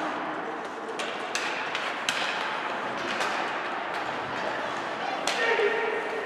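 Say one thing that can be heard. Skates scrape and hiss across the ice in an echoing rink.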